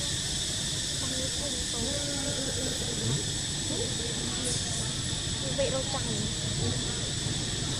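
A baby monkey squeaks faintly nearby.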